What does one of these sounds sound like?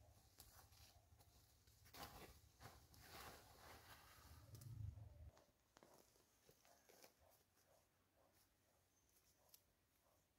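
A plastic tarp rustles and crinkles.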